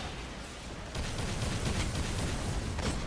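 Gunshots crack in quick bursts amid loud battle noise.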